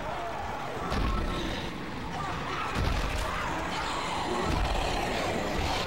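Heavy boots stomp hard on a metal grate with loud thuds.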